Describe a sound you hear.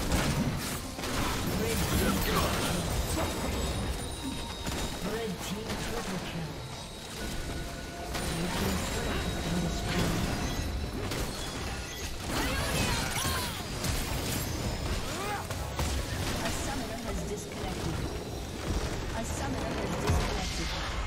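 Spells and weapon strikes crash and zap in a fast, busy fight.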